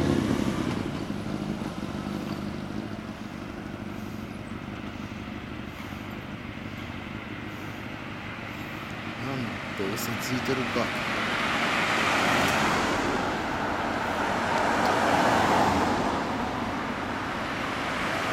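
Motorcycle engines idle quietly at a distance.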